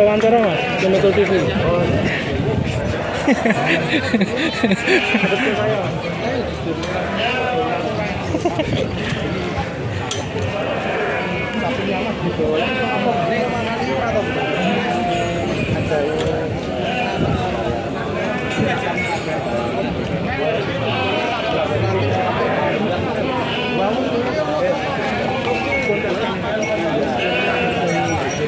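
A crowd of men chatters all around outdoors.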